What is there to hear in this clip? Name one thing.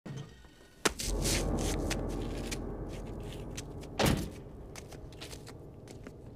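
Footsteps in sandals scuff slowly on pavement.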